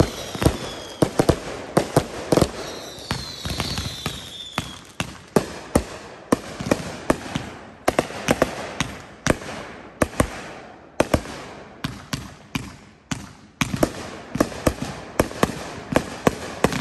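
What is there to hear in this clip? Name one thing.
Fireworks burst with loud booms and bangs outdoors.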